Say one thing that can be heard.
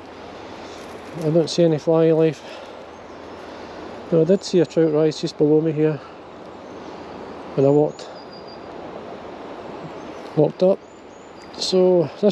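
A river flows gently outdoors.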